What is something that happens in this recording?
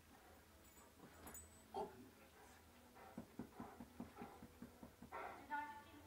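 A large dog growls playfully.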